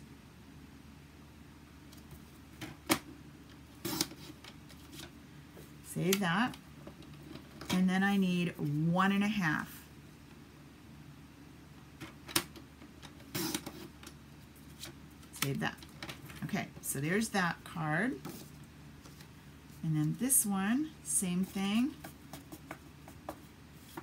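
Paper rustles and slides under hands.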